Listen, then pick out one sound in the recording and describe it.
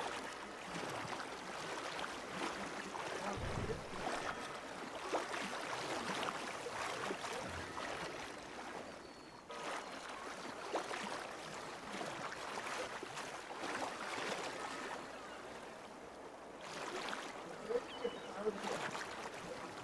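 Water splashes and churns as a swimmer strokes through it.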